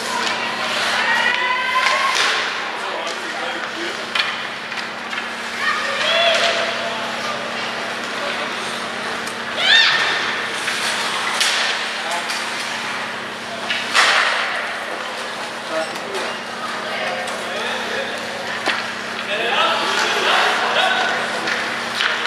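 Spectators shout and cheer from the stands of an echoing arena.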